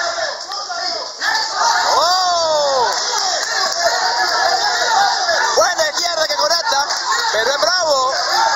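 Several men shout and cheer excitedly nearby.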